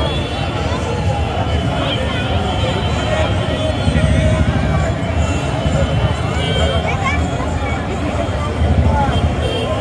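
Men in a crowd talk and shout close by.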